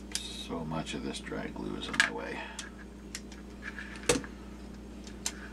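Small plastic parts click and tap as they are handled close by.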